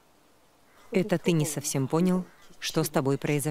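An elderly woman speaks nearby.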